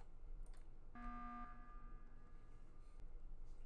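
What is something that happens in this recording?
A game alarm blares for an emergency meeting.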